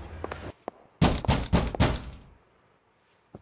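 A man knocks firmly on a wooden door.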